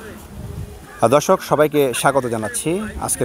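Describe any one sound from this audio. A man talks calmly and clearly, close by, outdoors.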